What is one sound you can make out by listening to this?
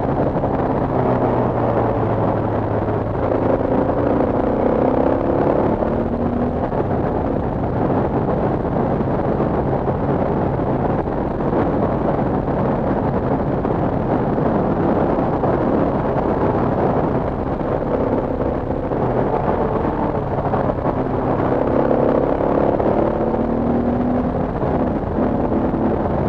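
A motorcycle engine hums while riding.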